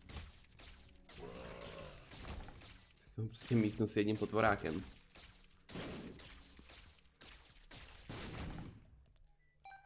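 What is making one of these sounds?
Video game shots and splatters crackle rapidly.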